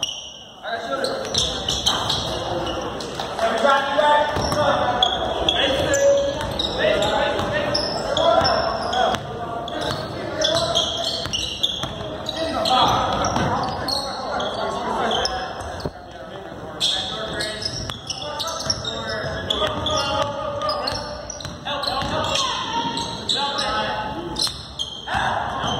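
Sneakers squeak on a gym floor.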